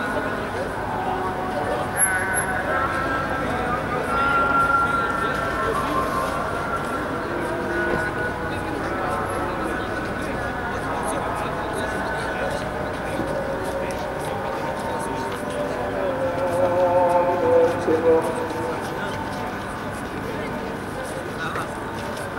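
A crowd of young men chatter and call out in the distance outdoors.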